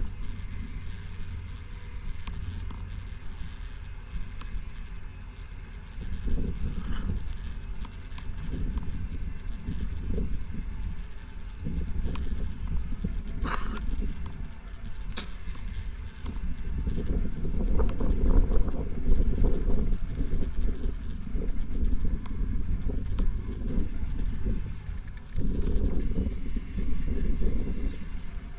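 Bicycle tyres hum steadily on a smooth paved path.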